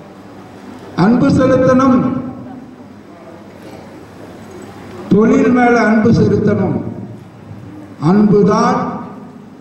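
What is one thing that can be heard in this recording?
An elderly woman sings loudly through a microphone over loudspeakers, in long held phrases.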